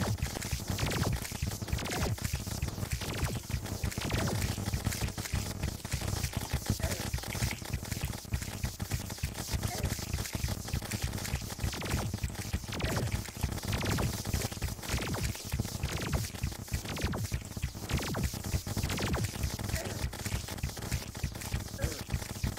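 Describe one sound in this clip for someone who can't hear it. Rapid game weapon shots and hit sounds fire constantly.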